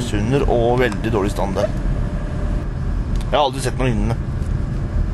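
A man speaks close by inside a car.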